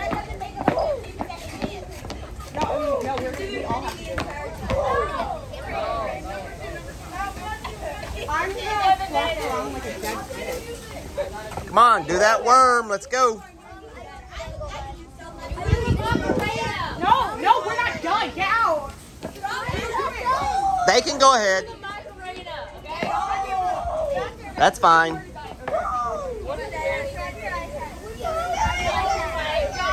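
Children talk and call out nearby, outdoors.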